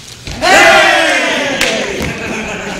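Several men clap their hands.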